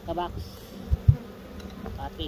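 A wooden hive box knocks as it is set down.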